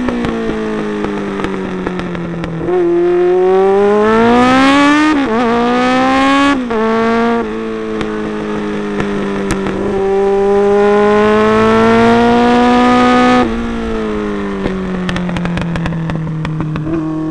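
A motorcycle engine whines and revs up and down.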